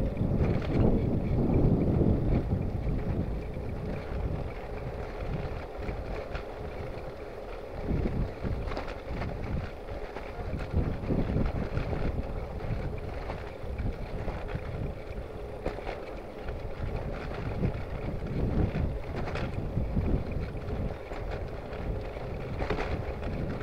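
Wind rumbles past outdoors.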